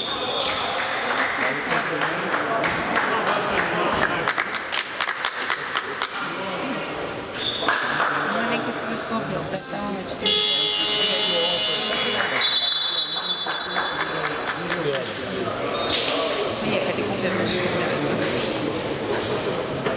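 A crowd of spectators chatters nearby.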